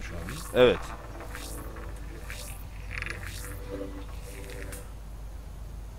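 A man speaks quietly into a microphone.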